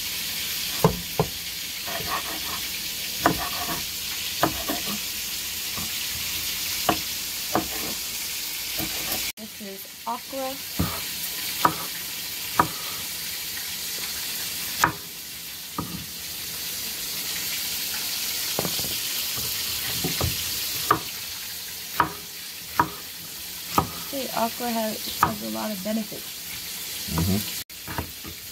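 A knife chops through vegetables on a wooden board with sharp knocks.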